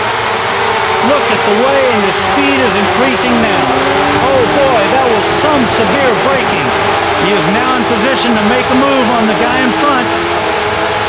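Engines of rival racing cars whine nearby as they pass.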